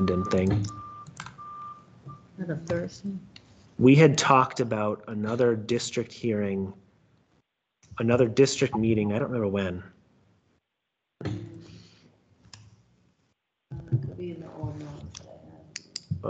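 An elderly woman speaks calmly over an online call.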